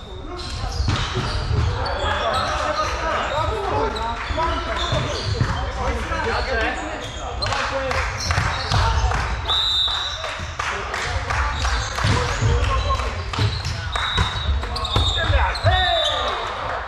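Young men shout and call to each other in a large echoing hall.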